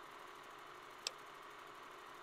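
A short electronic blip sounds as a menu choice changes.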